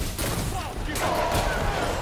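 A monster growls and roars.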